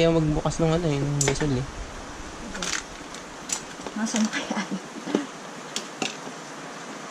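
Small bottles and boxes clink and knock as they are handled.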